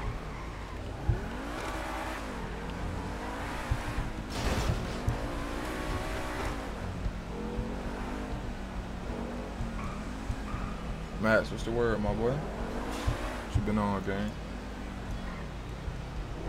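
A car engine revs and roars as the car speeds up.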